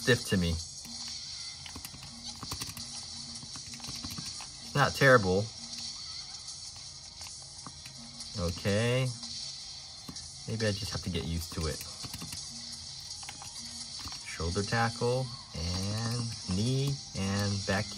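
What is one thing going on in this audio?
Game buttons click under quick thumb presses.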